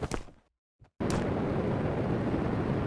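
A jetpack roars steadily.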